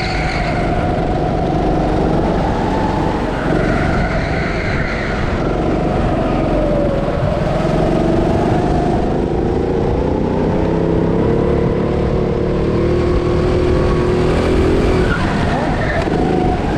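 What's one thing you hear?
A petrol go-kart engine drones at full throttle, its pitch rising and falling through the corners.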